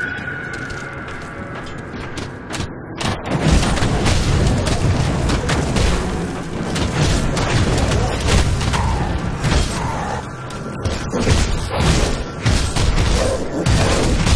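Weapons clash and thud in a fast fight.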